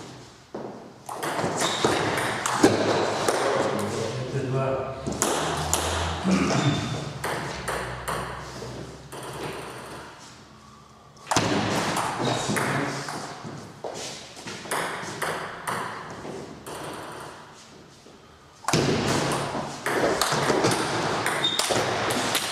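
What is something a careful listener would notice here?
A ping-pong ball clicks back and forth on paddles and a table in a quick rally.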